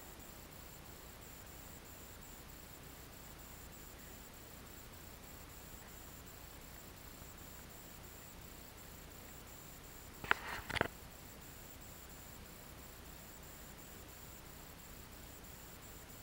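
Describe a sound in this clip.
Wind blows steadily across open water.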